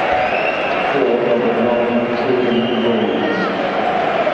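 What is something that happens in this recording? A crowd chants in unison.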